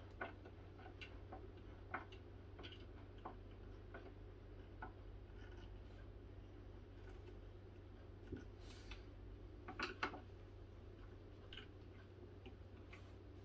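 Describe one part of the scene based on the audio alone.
Small knocks and clicks sound as screws are driven into a wooden shelf.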